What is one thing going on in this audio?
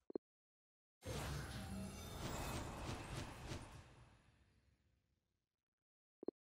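A loud whooshing burst plays as cards are revealed, then slowly fades.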